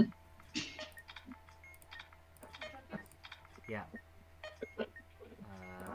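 Buttons click as they are pressed.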